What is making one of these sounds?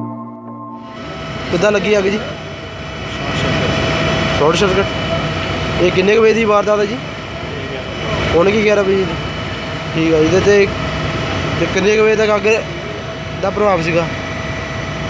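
An elderly man speaks calmly and steadily, close up.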